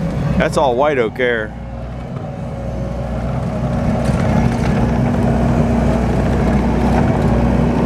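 A tracked loader clanks as it drives over dirt.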